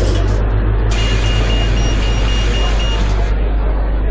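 Bus doors hiss shut with a burst of air.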